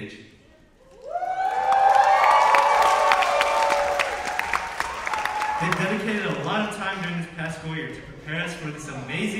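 A group of young voices sings together in a large echoing hall.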